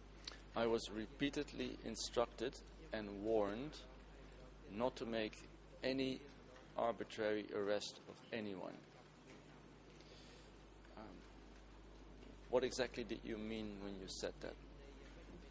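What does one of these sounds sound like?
A middle-aged man speaks calmly into a microphone, in pauses.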